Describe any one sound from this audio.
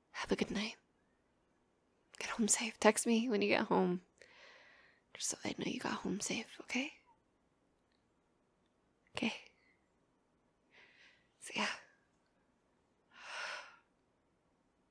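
A young woman speaks softly and intimately, close to a microphone, with long pauses.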